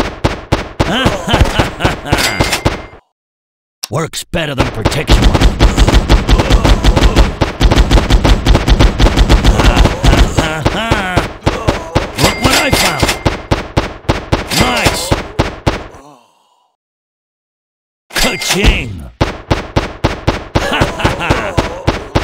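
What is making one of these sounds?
Guns fire in rapid bursts of shots.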